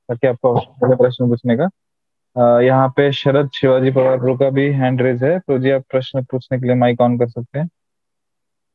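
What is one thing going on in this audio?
A man chants in a steady voice, heard close through an online call, then falls silent.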